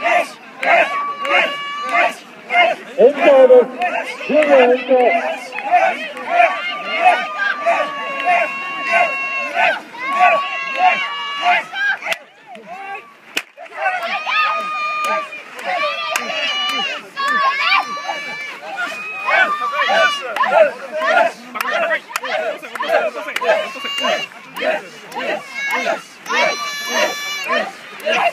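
A group of young men and women shout a rhythmic chant together, close by and outdoors.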